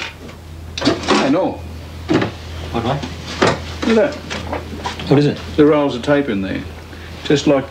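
Metal objects clink and rattle in a box.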